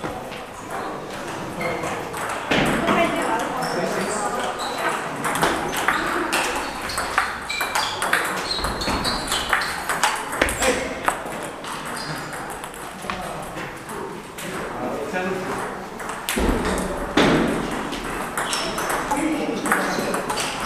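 A ping pong ball clicks back and forth off paddles and a table.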